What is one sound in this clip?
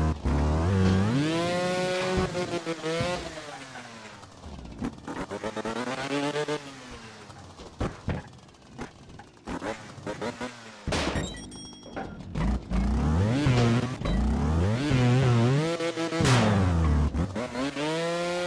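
A motorbike engine revs up and down sharply.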